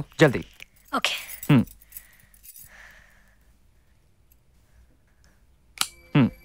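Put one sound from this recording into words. A young woman speaks playfully in short phrases.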